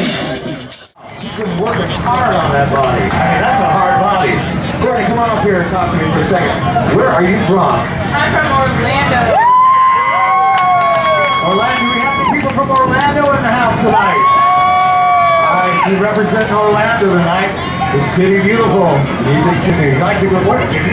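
A crowd of young women and men chatters nearby.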